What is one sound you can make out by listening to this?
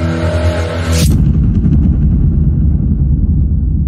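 A fiery explosion booms with a deep, rumbling roar.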